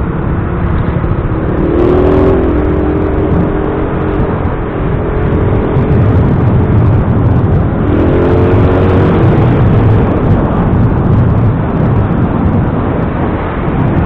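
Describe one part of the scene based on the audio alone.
Tyres roll over a wet road.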